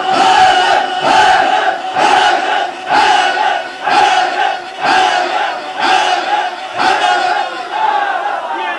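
A young man sings loudly and passionately into a microphone.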